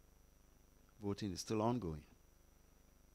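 A man speaks a few words into a microphone.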